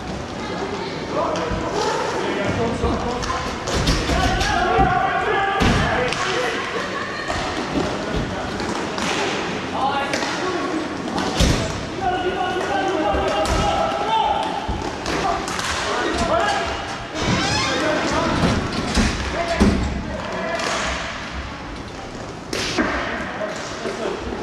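Players shout and call out across an echoing hall.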